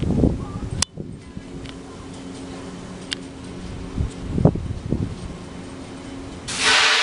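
A drop tower ride's machinery hums steadily overhead.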